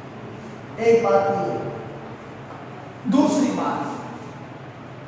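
A young man speaks loudly in short phrases, with a slight echo.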